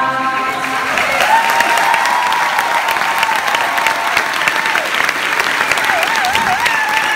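A large audience claps loudly.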